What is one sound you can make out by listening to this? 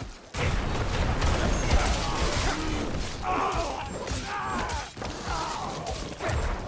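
Weapons strike and crunch in a fast, noisy fight.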